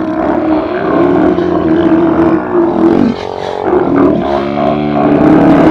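Sea lions roar and bellow in a loud chorus close by.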